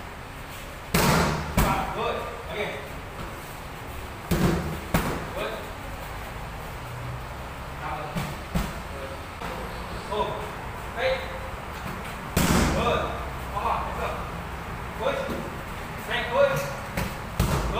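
Kicks and punches smack hard against training pads in an echoing room.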